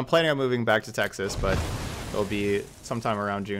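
A fiery blast whooshes and roars.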